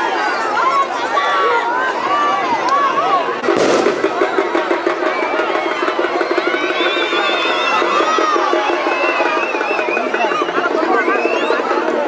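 A large outdoor crowd shouts and cheers excitedly.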